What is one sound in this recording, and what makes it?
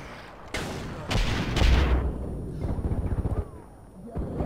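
Pistol shots crack loudly and echo.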